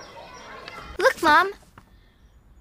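A young girl calls out brightly and excitedly nearby.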